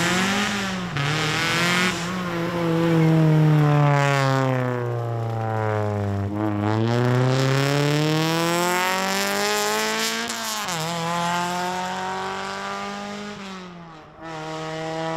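A rally car engine revs hard, rising and falling in pitch, then fades into the distance.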